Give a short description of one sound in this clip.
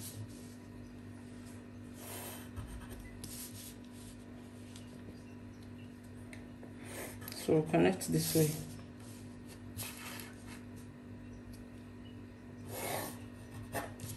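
A plastic ruler slides and taps on paper.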